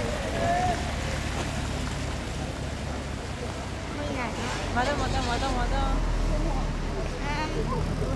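A motorcycle engine rumbles steadily as it rides past.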